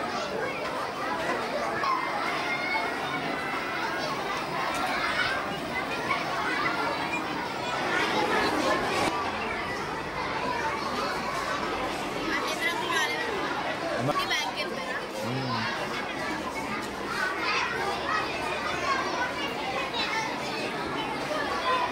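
Many children chatter and call out all around.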